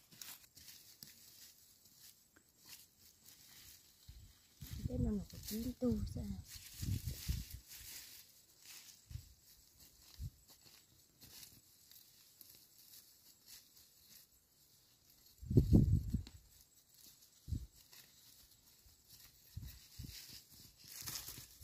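Leaves rustle as plants are pulled and handled.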